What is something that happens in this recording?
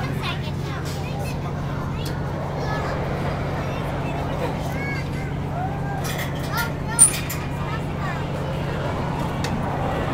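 Small coaster cars rumble slowly along a track.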